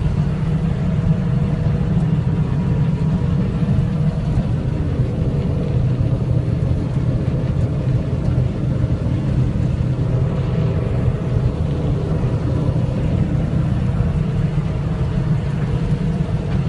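A combine harvester's header rattles as it cuts through dry wheat.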